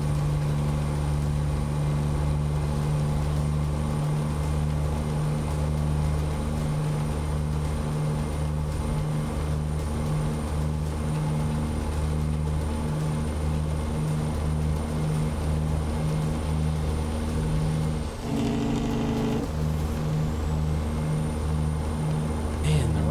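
A truck engine drones steadily with a low, pulsing rumble.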